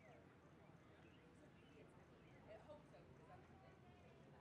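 A horse's hooves thud softly on sand in the distance.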